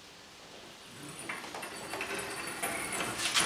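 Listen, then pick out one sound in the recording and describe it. Something heavy scrapes and shifts across a hard floor.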